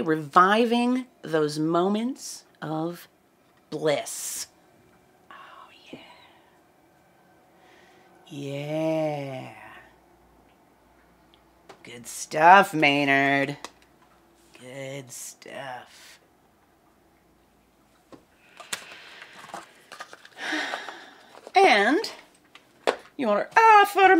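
A woman talks with animation into a close microphone, pausing now and then.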